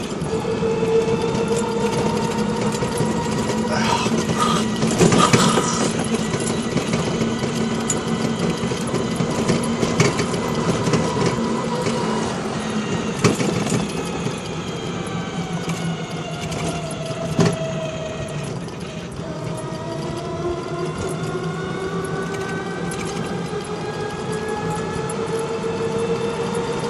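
A scooter engine hums steadily, rising and falling in pitch as it speeds up and slows down.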